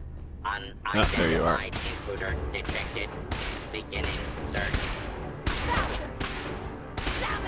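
Gunshots fire in rapid bursts, echoing.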